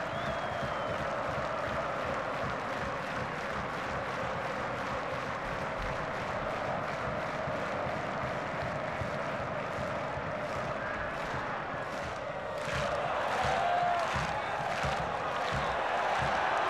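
A stadium crowd claps in a fast, even rhythm.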